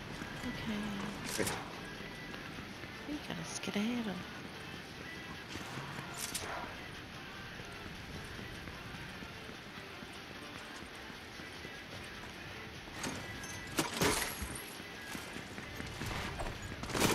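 Footsteps run quickly across a stone floor.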